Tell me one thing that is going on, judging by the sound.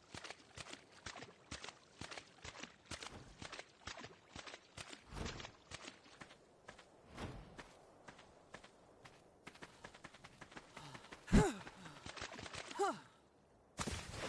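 Footsteps patter quickly through shallow water and sand.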